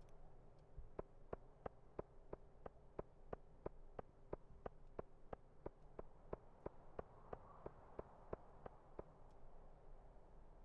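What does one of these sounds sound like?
Footsteps tap at a quick, steady pace on hard ground.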